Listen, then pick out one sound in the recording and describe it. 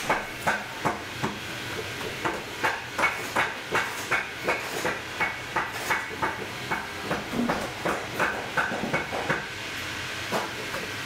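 A small metal tool taps steadily and rhythmically against a leather sole.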